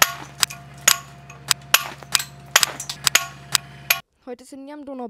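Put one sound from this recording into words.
Hammers strike metal chisels with sharp ringing clangs.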